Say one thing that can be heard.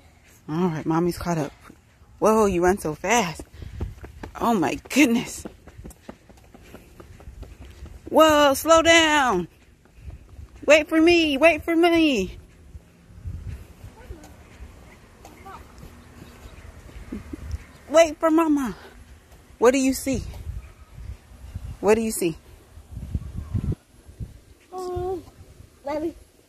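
A young child calls out loudly and excitedly nearby.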